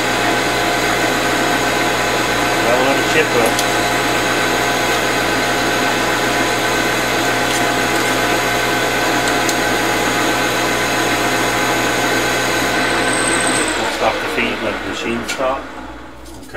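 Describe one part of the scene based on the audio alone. A metal lathe whirs steadily as a cutting tool shaves metal.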